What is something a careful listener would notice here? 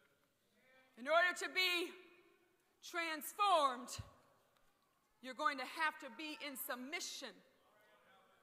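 A young woman speaks steadily into a microphone in an echoing hall.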